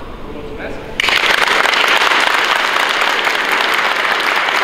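A crowd claps and applauds loudly in a large echoing hall.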